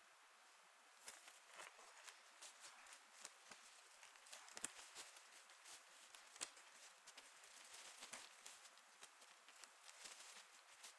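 Cards are shuffled and riffled quietly into a deck.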